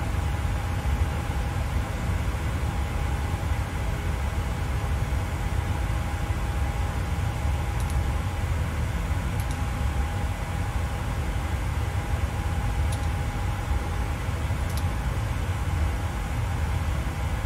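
A jet engine hums low and steady.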